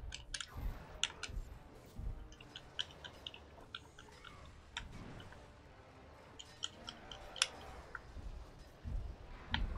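Metal blades clink and clang in quick strikes.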